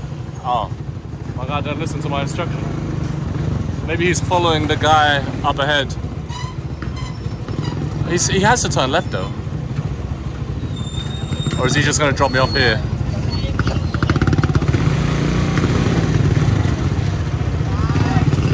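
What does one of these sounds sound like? A motor rumbles steadily while riding along a street.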